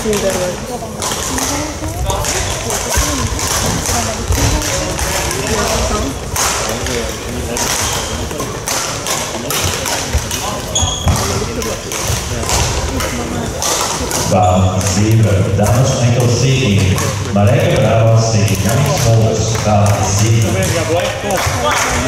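Rackets strike a shuttlecock in a large echoing hall.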